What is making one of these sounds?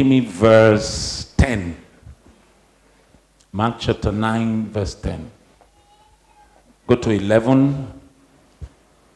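An elderly man speaks forcefully into a microphone, in short bursts.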